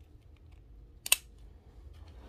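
A plastic buckle snaps shut.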